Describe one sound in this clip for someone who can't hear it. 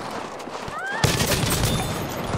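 A machine gun fires rapid bursts close by.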